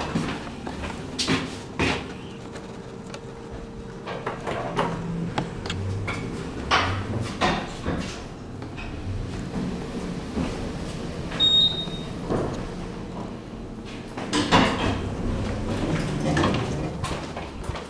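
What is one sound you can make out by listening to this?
An elevator motor hums steadily while the car moves.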